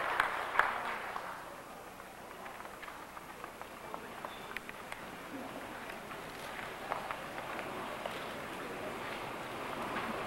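A man announces through a loudspeaker in a large echoing hall.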